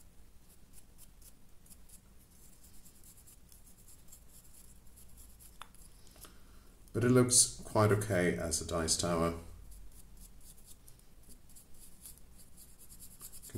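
A paintbrush dabs and scratches lightly on a rough surface.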